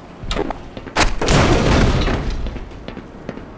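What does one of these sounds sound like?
A crowbar smashes a wooden crate with a splintering crack.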